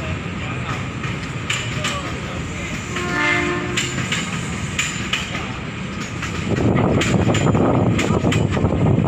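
An electric train rumbles along the tracks nearby.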